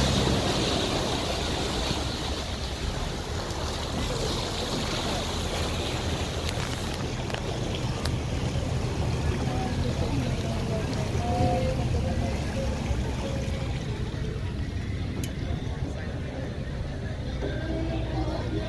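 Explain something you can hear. Churning water from a boat's wake rushes and foams.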